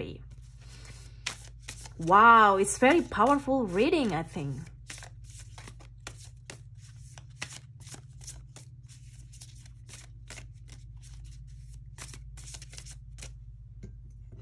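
Playing cards riffle and flick softly as they are shuffled by hand.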